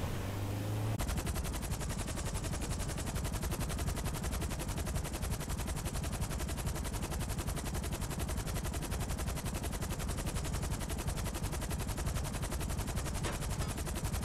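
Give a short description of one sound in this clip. Helicopter rotors thud steadily and rapidly.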